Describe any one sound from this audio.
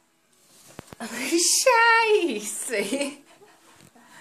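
A woman laughs and shrieks loudly nearby.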